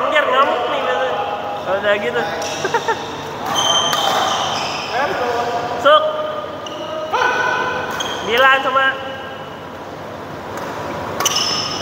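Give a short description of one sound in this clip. Shoes squeak sharply on a hard court floor in a large echoing hall.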